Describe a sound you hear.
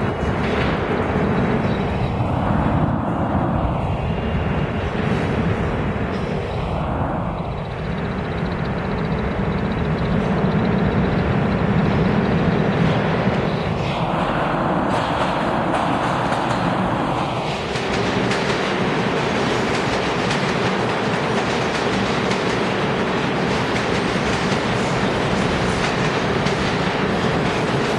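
A subway train's wheels clatter over the rails.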